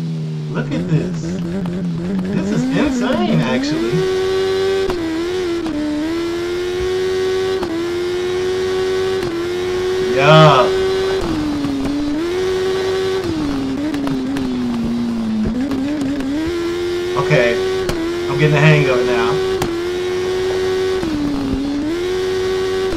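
A motorcycle engine roars and whines, rising and falling in pitch as gears change.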